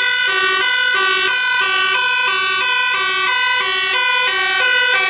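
A fire engine's two-tone siren blares loudly close by, alternating rapidly between two notes.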